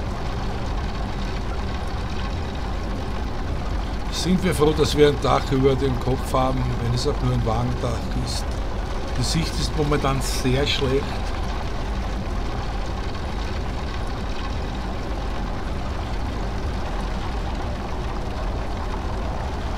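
A train engine rumbles low and steady.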